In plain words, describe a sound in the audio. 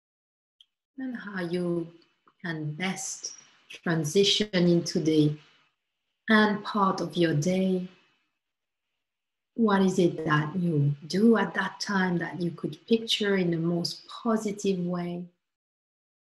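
A woman speaks calmly and softly into a close microphone, as over an online call.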